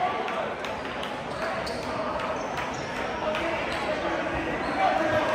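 Basketball sneakers squeak sharply on the court.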